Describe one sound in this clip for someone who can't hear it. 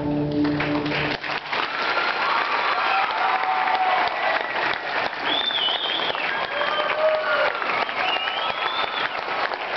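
A large choir sings together in an echoing hall.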